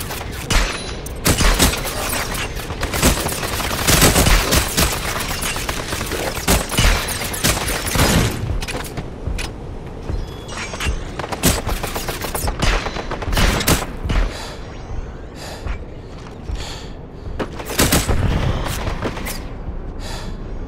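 Gunshots fire in quick, loud bursts.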